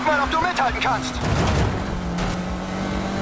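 A car smashes through obstacles with a crash and scattering debris.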